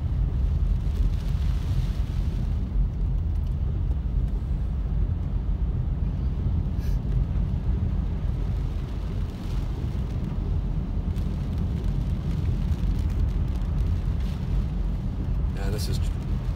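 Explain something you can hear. A windshield wiper sweeps across the glass with a soft squeak.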